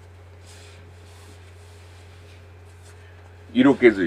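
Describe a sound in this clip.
Cloth rustles as a man pulls off a shirt.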